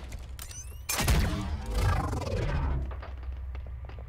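Heavy footsteps clank on a metal floor.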